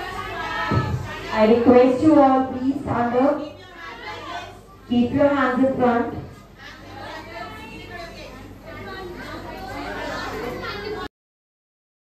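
Children chant loudly together in unison.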